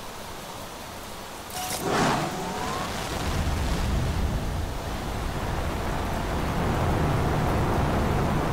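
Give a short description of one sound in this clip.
Heavy rain pours steadily.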